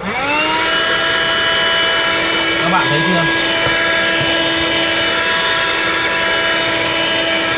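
A handheld vacuum cleaner motor starts up and whirs steadily at a high pitch.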